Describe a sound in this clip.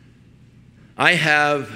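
An older man laughs.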